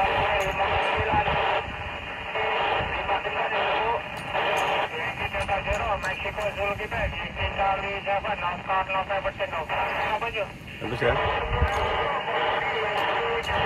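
A voice crackles through a handheld radio.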